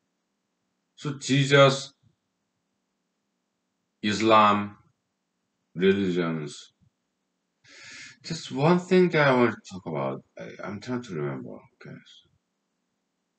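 A man speaks calmly close by, in short bursts with pauses.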